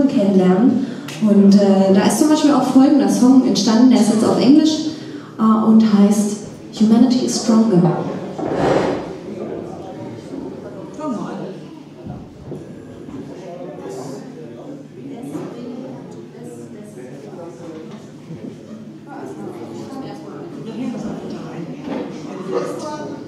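A bass guitar plays a low line.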